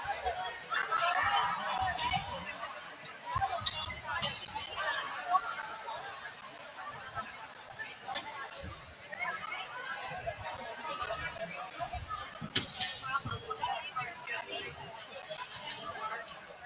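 A crowd of children and adults chatters and calls out in a large echoing gym.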